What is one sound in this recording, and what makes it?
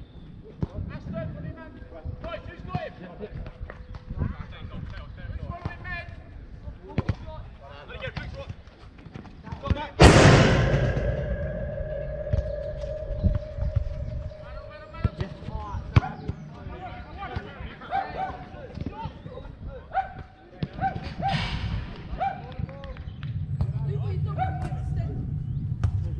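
Men shout to each other across an outdoor pitch.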